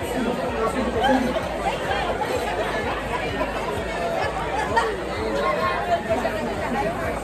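Many people chatter in a busy, noisy room.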